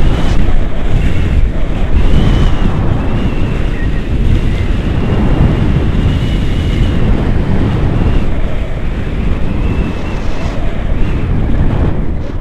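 Strong wind rushes and buffets loudly against the microphone outdoors.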